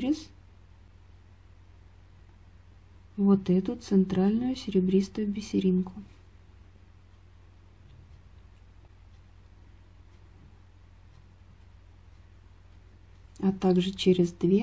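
Small beads click softly as a needle threads through them.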